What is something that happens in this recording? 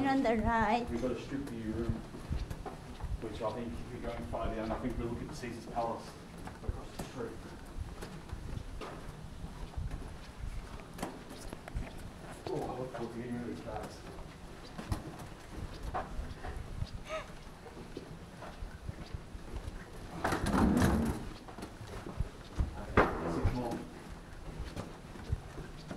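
Suitcase wheels rumble over carpet.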